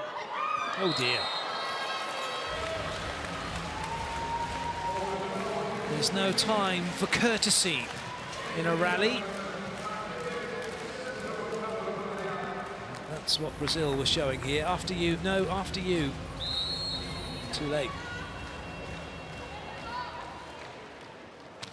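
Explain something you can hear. A large crowd cheers and shouts in a big echoing hall.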